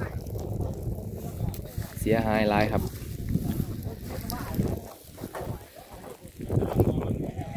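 A fire crackles and burns outdoors.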